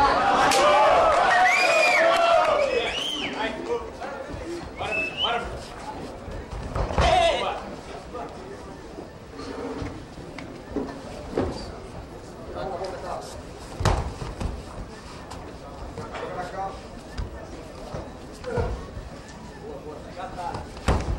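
A crowd in a large hall cheers and shouts.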